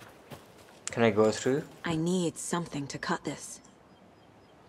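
A young woman speaks in a low, tense voice.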